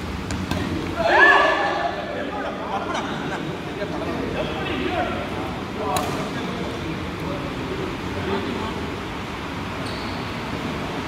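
Rackets strike a shuttlecock with sharp pings in a large echoing hall.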